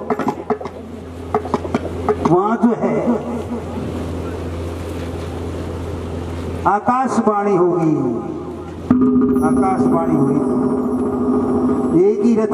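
An elderly man chants in a singing voice through a microphone and loudspeakers.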